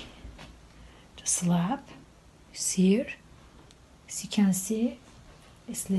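A sheet of paper rustles as a hand peels it up.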